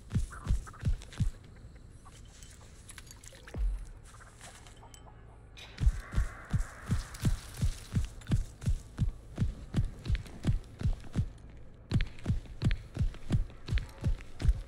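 Heavy footsteps thump at a steady pace.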